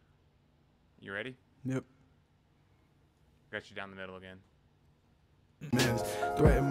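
A young man sings into a close microphone in short bursts.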